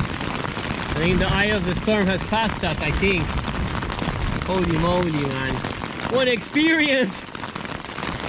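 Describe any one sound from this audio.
An adult man speaks calmly, close by.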